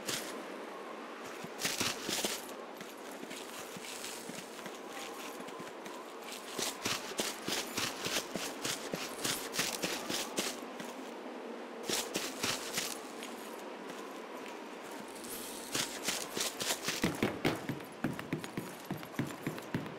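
Footsteps tread steadily over grass and hard ground.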